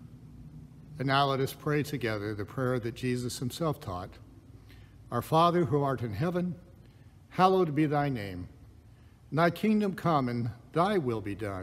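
A middle-aged man speaks slowly and calmly into a nearby microphone, pausing between phrases.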